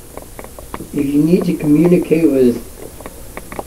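A woman's voice speaks calmly through a small loudspeaker.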